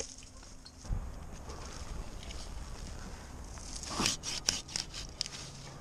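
Leafy branches rustle and scrape close by.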